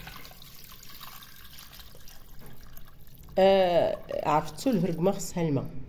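Water pours and splashes into a pot.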